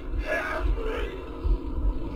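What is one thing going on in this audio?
A man speaks in a low, menacing voice.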